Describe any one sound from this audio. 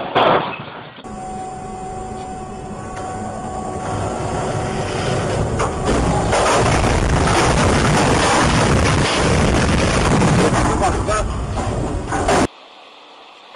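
A heavy crane topples off a ship and crashes onto a dock with a loud rumble.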